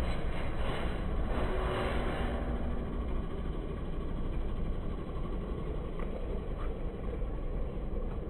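A van engine hums as the van drives slowly across the street.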